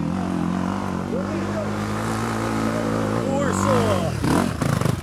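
A dirt bike engine revs as it climbs toward the listener.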